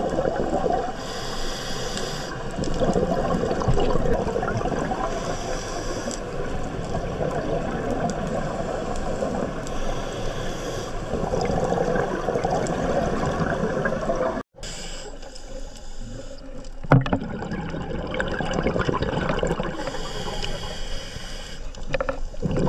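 Air bubbles from a diver's breathing gurgle and rumble underwater in regular bursts.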